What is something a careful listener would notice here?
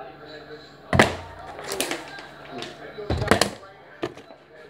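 A plastic bottle knocks onto a table.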